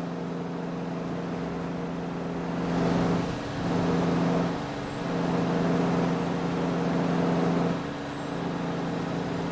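Tyres hum on a road.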